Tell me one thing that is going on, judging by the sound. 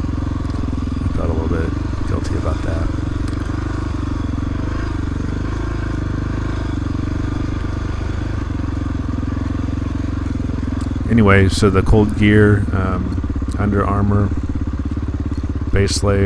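A dirt bike engine putters steadily close by.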